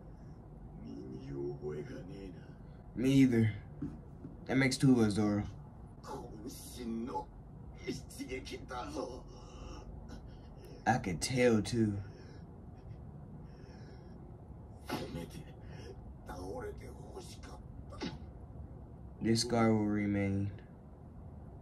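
A young man talks close by, reacting with animation.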